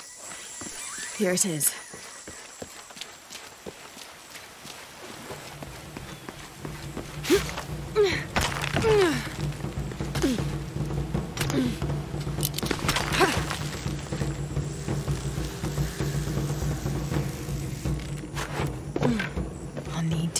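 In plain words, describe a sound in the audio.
A woman grunts with effort as she climbs.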